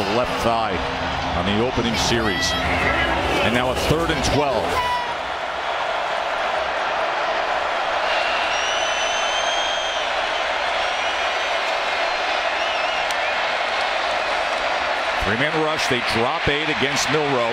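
A male commentator speaks with animation over a broadcast microphone.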